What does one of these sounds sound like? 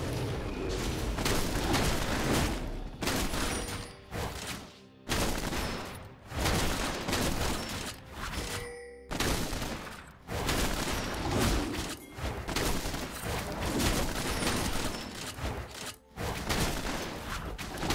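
Game combat sounds of blows landing on a monster ring out repeatedly.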